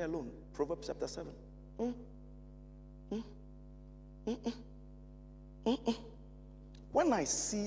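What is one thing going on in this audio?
A man speaks with feeling into a microphone, in short bursts with pauses.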